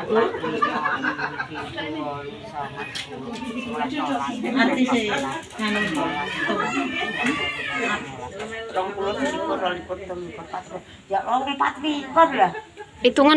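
An older woman talks with animation close by.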